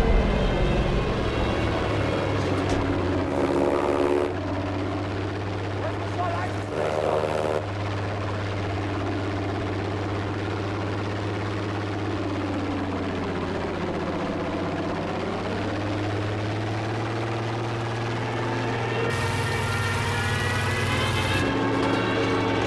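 A propeller plane engine drones steadily and loudly.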